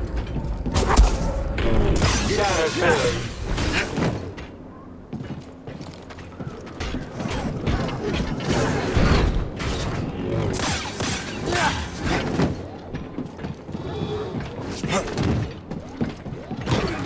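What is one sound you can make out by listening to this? Blades clash against metal with sharp sparking hits.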